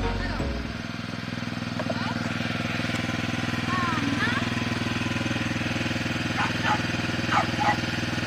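A quad bike engine idles with a steady, low rumble close by.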